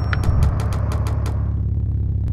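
A game's chimes ring out in quick beeps.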